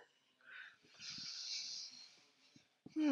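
A woman breathes out slowly.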